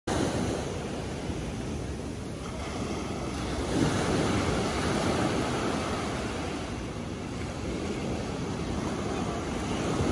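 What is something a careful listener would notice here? Small waves wash onto a sandy shore and fizz as they draw back.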